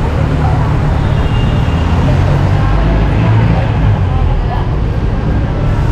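A bus engine rumbles as it drives past close by.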